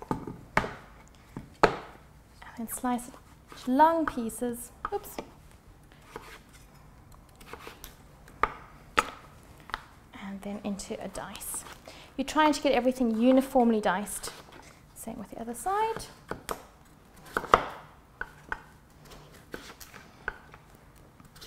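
A knife chops through squash and knocks on a wooden board.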